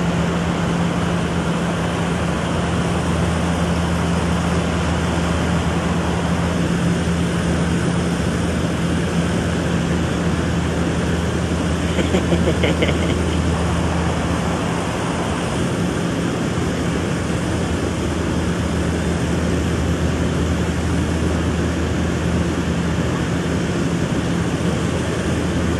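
A heavy machine's engine rumbles low and steady.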